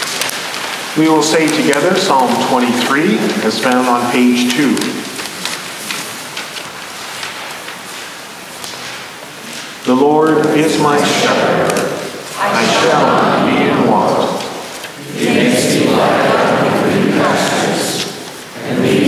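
A congregation sings together in a large echoing hall.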